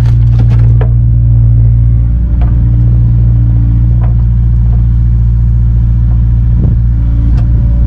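A diesel engine runs with a steady low rumble close by.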